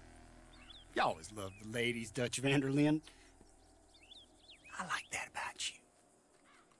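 An older man speaks slowly and warmly.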